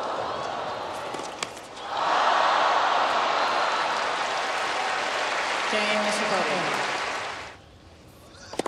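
A large crowd applauds and cheers in a big open arena.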